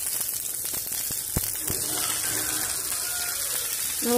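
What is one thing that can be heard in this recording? Chopped vegetables tumble from a plastic bowl into a metal pan.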